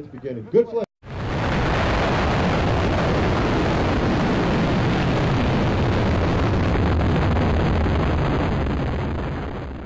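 A rocket engine roars loudly and steadily.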